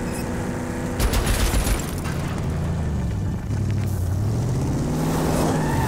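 Tyres rumble and bump over rough ground.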